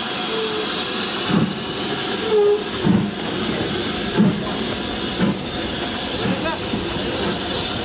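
A steam locomotive hisses steadily with escaping steam.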